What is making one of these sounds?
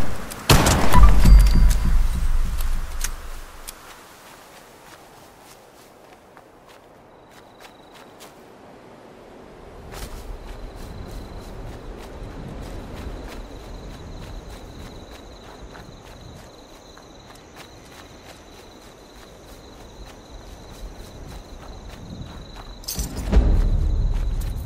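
Footsteps rustle through tall grass and undergrowth.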